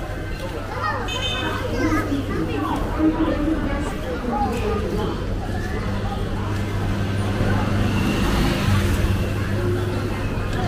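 Men and women chatter nearby on a busy street.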